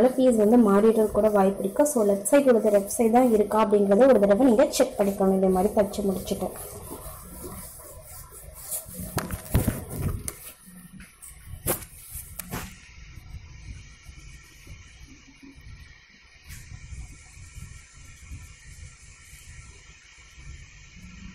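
A sewing machine stitches through fabric with a soft rattle.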